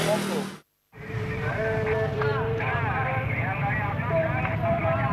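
A crowd of men shout and clamour outdoors.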